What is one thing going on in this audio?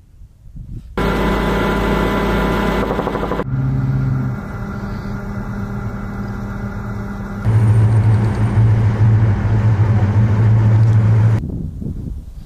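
A tracked Bradley fighting vehicle's diesel engine rumbles.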